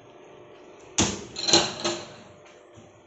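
A wooden cabinet door bangs shut.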